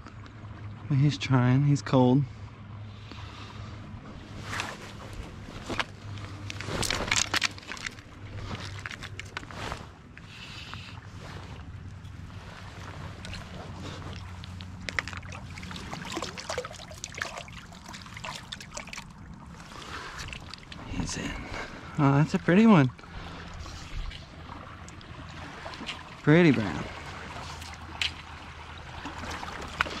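Water flows gently in a stream.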